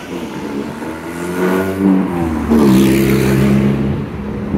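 A car engine hums close by as the car pulls past.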